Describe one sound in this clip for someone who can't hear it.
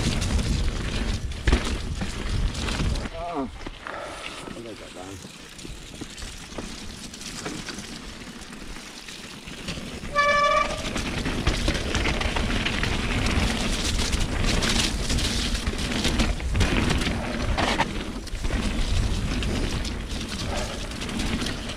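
Bicycle tyres rumble and crunch over a bumpy dirt trail.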